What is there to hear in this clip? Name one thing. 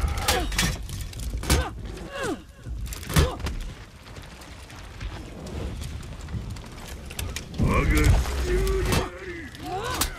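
Men grunt and shout with effort during a fight.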